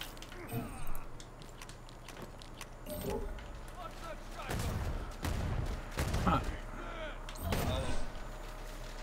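A shotgun fires with loud, booming blasts.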